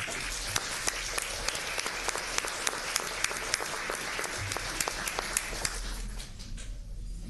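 A crowd applauds in a large room.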